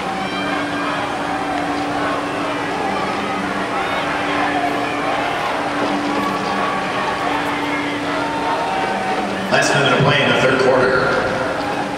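Young men shout to one another across an open outdoor field.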